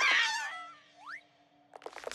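A cartoon ghost makes a short high whooshing sound.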